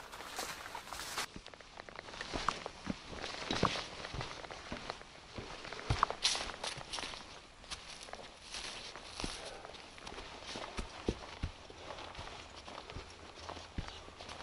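Footsteps crunch on dry leaves and earth along a trail.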